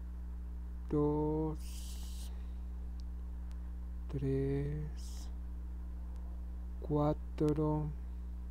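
A crochet hook pulls yarn through stitches with a soft rustle.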